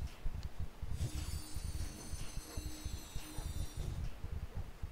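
A magic spell crackles and shimmers with a bright ringing sound.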